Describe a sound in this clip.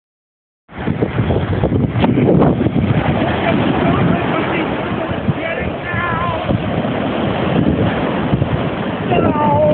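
Wind blows hard into the microphone outdoors.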